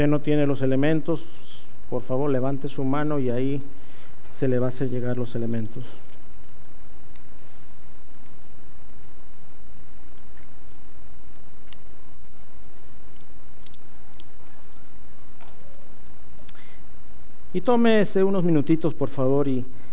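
A middle-aged man speaks calmly through a microphone, pausing at length.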